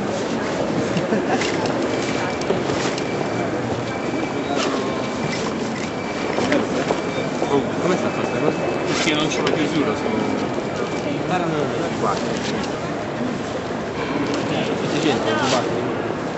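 Many people chatter in a large echoing hall.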